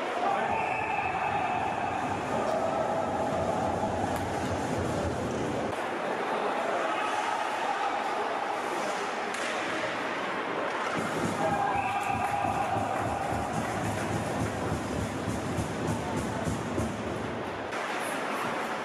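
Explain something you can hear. A crowd cheers and shouts in a large echoing arena.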